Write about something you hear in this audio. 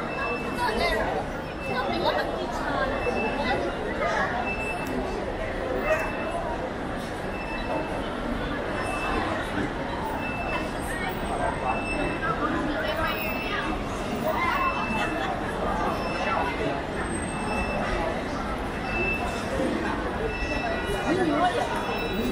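A large crowd chatters outdoors, with many voices overlapping.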